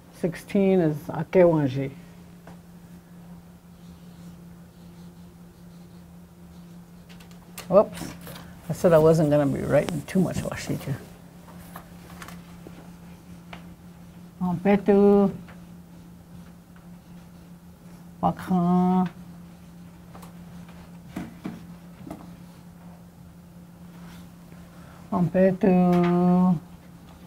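An elderly woman speaks slowly and clearly in short phrases, as if teaching.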